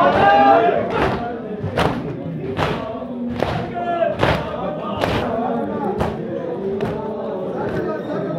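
Men beat their chests in a rhythm of sharp thumps.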